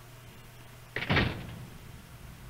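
A door thuds shut.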